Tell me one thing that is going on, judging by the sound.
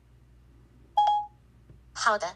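A phone gives a short chime.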